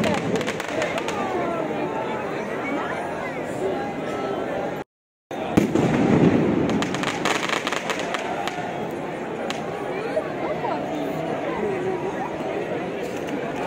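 A crowd of people murmurs and chatters nearby.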